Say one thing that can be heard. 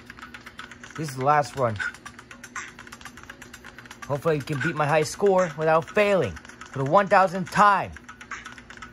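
A man speaks with animation in a put-on puppet voice.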